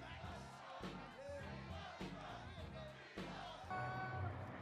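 A man speaks forcefully through a loudspeaker to a crowd.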